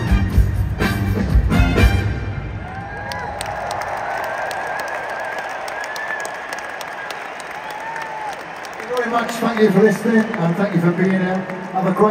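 A large crowd cheers and sings along.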